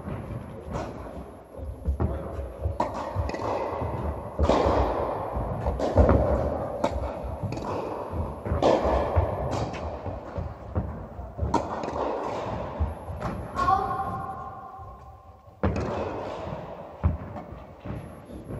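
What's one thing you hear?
Tennis balls bounce on the court.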